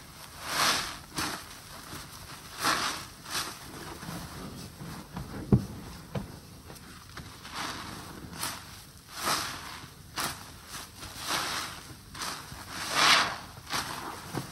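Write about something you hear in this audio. Wet suds squelch as a soapy cloth is squeezed.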